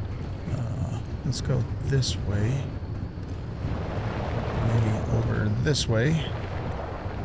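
An elderly man talks with animation through a microphone.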